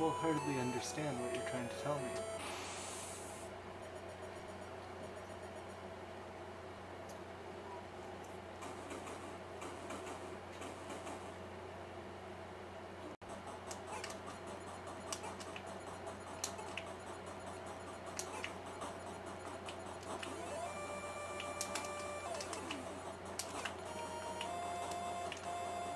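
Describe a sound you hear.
Chiptune game music plays with beeping tones.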